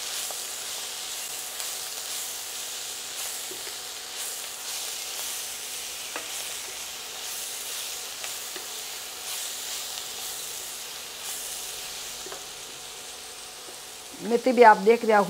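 Leafy greens sizzle in a hot pan.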